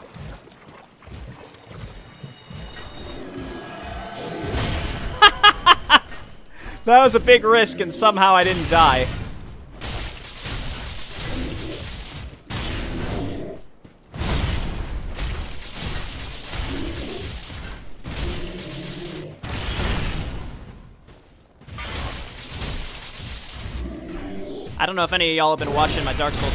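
Heavy metal weapons clang and thud against a large creature.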